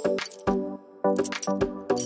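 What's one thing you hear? A metal chain clinks.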